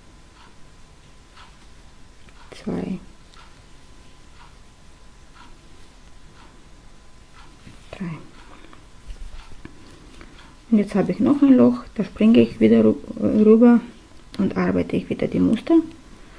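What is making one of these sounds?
A crochet hook taps faintly.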